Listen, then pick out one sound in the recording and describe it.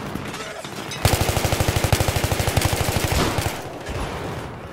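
An automatic rifle fires rapid, loud bursts.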